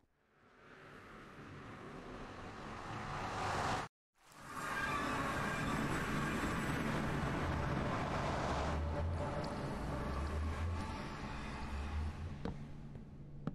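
A portal hums and whooshes loudly.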